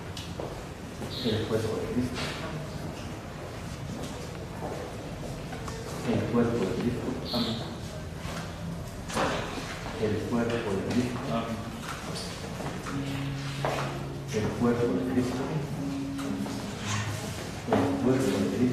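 A man speaks quietly, briefly, several times.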